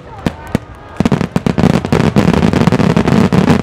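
Fireworks crackle in a dense, rapid burst.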